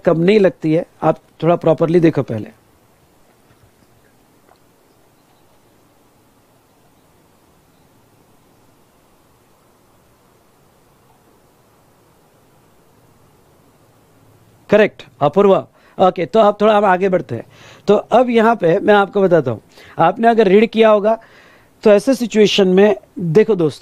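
A man speaks calmly and clearly into a close microphone, pausing for a while in the middle.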